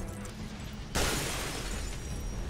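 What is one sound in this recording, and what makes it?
A glass window shatters.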